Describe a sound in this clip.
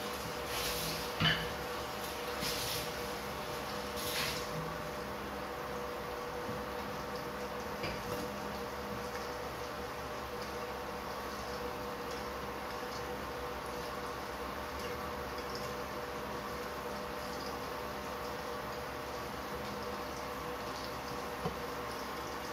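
Food sizzles softly in a covered pan.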